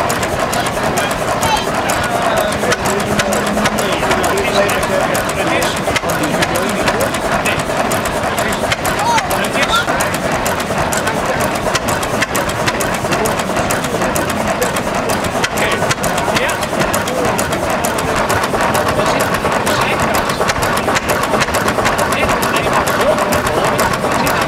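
A small stationary engine chugs and clatters steadily close by.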